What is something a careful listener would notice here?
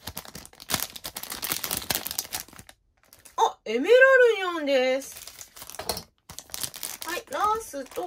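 A foil packet crinkles and rustles in someone's hands.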